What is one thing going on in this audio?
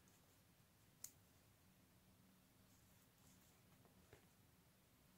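A crochet hook clicks softly against yarn.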